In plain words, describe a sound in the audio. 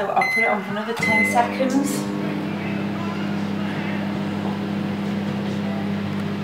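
A microwave oven hums steadily.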